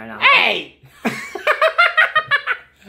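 Two men laugh loudly close by.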